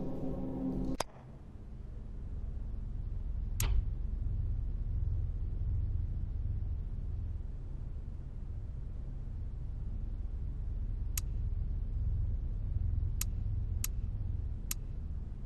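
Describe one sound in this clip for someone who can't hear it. Short, sharp menu clicks sound every now and then.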